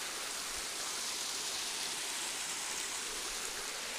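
Water trickles over a stony path.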